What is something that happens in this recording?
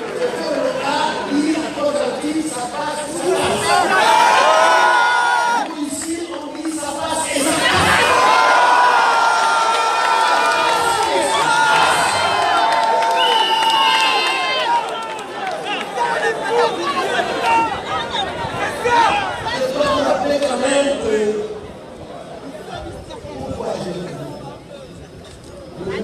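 A man speaks forcefully into a microphone over loudspeakers outdoors.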